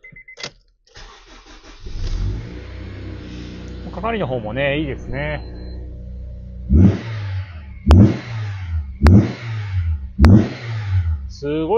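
A car engine cranks and starts, then idles steadily.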